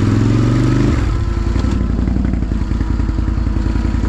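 A quad bike engine idles with a steady low putter.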